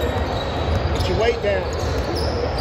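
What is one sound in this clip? Shoes squeak sharply on a hard court floor.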